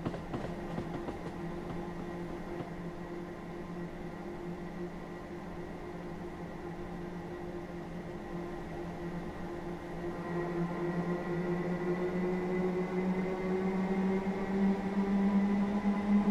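A diesel train engine hums steadily and grows louder as the train speeds up.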